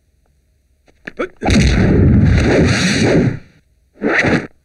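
A kick lands with a loud, booming hit.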